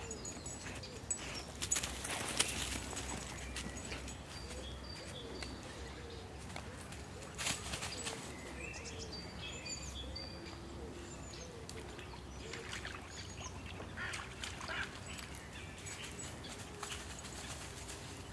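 A dog's paws rustle through dry leaves.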